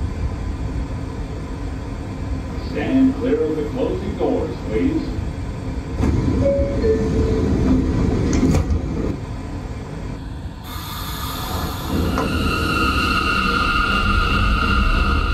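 A subway train hums steadily with a low rumble.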